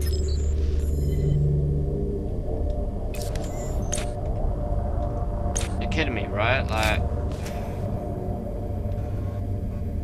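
A young man talks quietly into a microphone.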